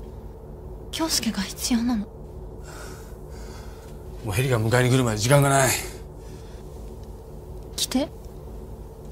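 A man speaks in a low, tense voice.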